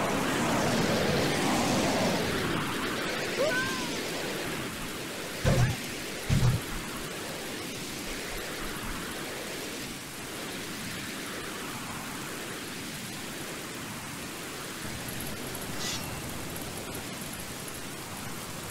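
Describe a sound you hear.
Rain falls steadily and hisses.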